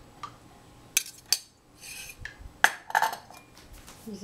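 A metal saucepan is set down on a hard counter with a clatter.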